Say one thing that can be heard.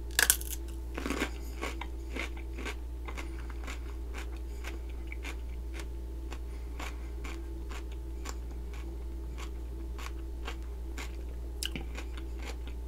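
A woman chews with soft, wet crunching.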